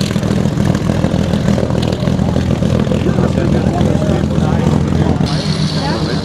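A propeller plane's engine roars loudly as the plane speeds past.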